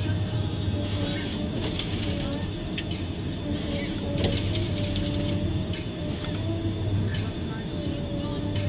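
A hydraulic arm whines as it swings.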